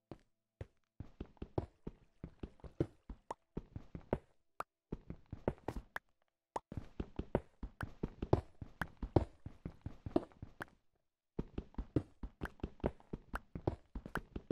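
A pickaxe chips rapidly at stone, with crumbling bits falling.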